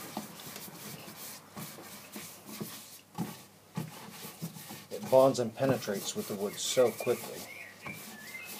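A cloth rag rubs over a textured wooden surface.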